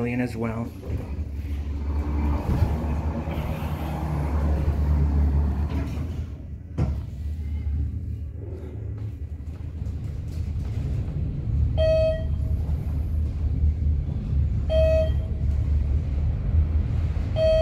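An elevator motor hums steadily.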